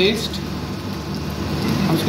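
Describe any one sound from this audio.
Water pours into a hot pan and hisses.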